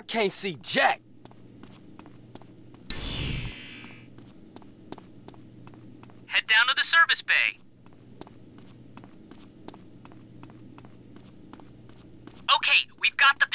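Footsteps run quickly along a hard floor.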